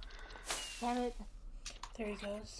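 A firework whooshes up into the sky.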